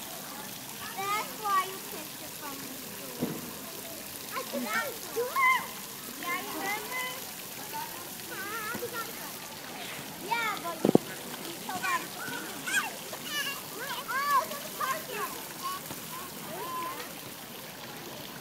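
A toddler babbles and squeals excitedly nearby.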